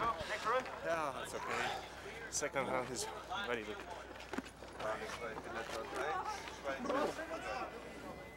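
A man speaks excitedly, close by.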